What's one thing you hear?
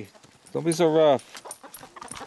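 A puppy yelps loudly.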